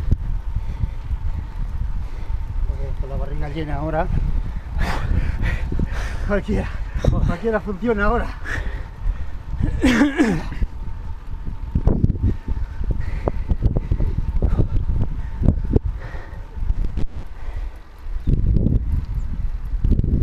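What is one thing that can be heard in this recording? Wind rushes and buffets loudly against the microphone.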